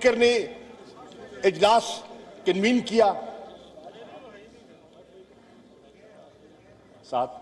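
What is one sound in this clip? A middle-aged man speaks forcefully in short bursts with long pauses, heard through a microphone in an echoing hall.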